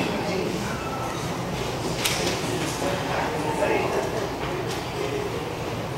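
A woman speaks quietly into a microphone, heard through a loudspeaker.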